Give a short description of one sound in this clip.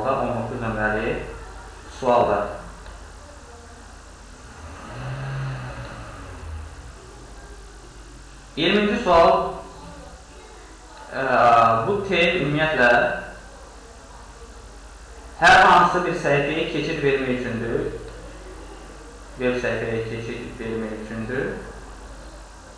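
A man speaks calmly close to a microphone, pausing now and then.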